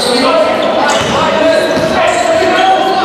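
A basketball thuds as it bounces on the floor.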